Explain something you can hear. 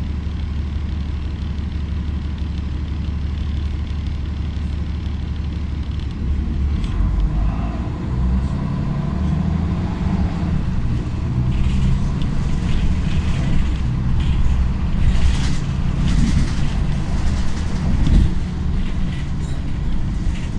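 A bus engine hums low and steady from inside the bus.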